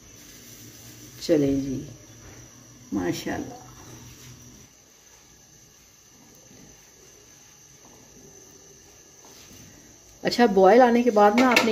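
Potatoes sizzle gently as they fry in oil.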